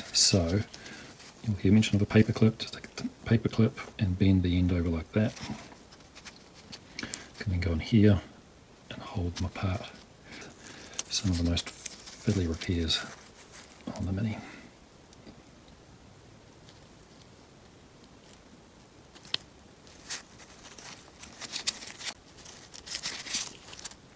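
Small plastic and metal parts click and scrape together as they are handled.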